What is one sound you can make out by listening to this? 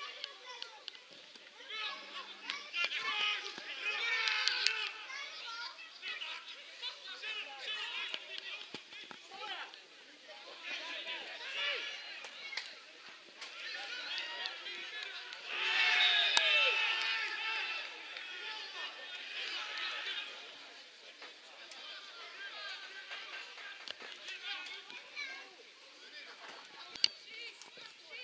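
Football players shout to each other outdoors on an open field.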